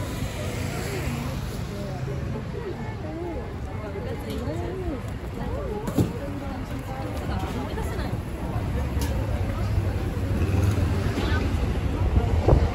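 Footsteps shuffle along the pavement.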